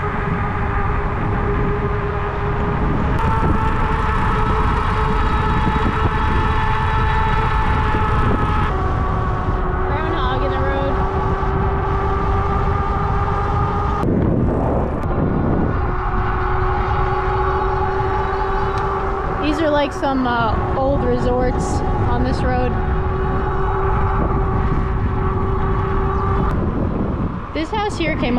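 Wind rumbles loudly against the microphone outdoors.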